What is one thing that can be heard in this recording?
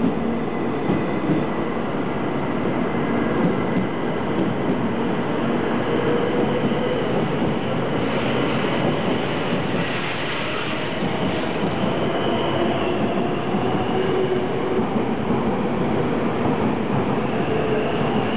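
A high-speed train rushes past with a loud, steady roar.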